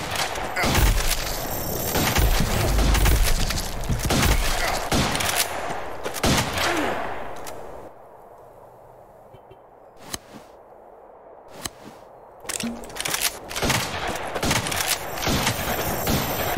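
Video game combat sounds crash and thump rapidly.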